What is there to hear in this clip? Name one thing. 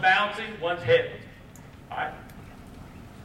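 A man speaks loudly through a microphone, with a slight echo.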